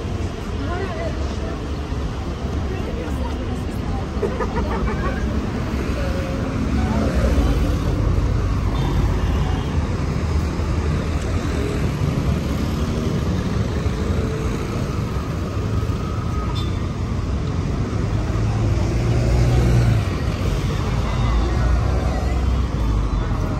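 Men and women chatter nearby in a crowd.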